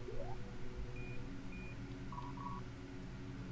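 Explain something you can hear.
A game menu gives short soft beeps.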